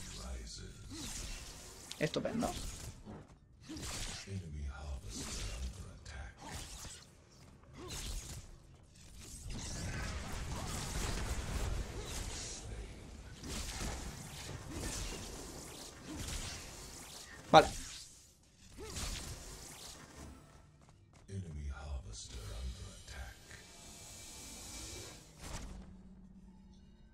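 Magic blasts and energy bolts crackle and boom in a fight.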